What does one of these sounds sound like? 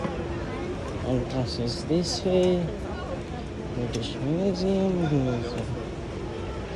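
Children and young people chatter and call out nearby outdoors.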